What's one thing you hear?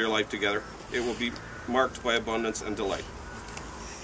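A young man reads aloud calmly outdoors.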